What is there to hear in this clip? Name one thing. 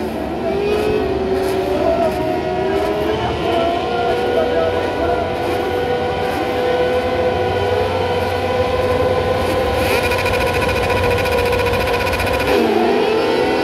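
Many small racing engines idle and rev together outdoors.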